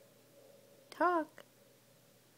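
A baby lets out a short, high squeal close by.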